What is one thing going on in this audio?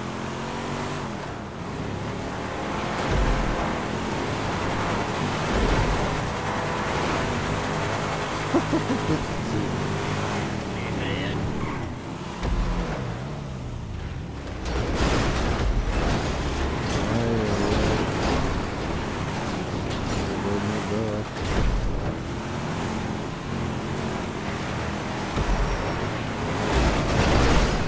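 A car engine roars steadily as the car drives over rough ground.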